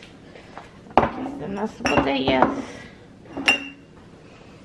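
Glass bottles clink as they are set down on a surface.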